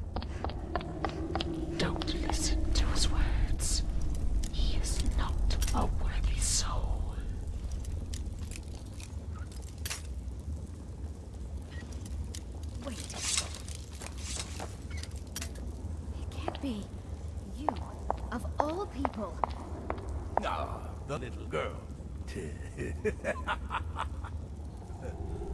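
A torch crackles and hisses.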